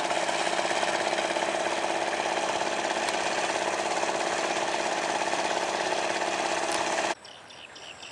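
A truck engine hums steadily nearby.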